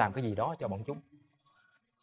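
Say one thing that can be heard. A man speaks briefly at close range.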